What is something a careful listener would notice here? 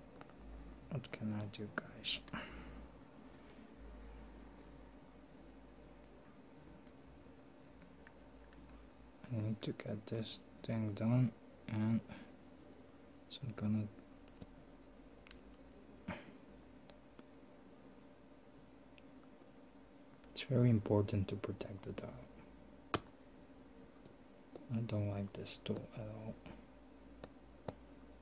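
A small metal tool clicks and scrapes against a watch case.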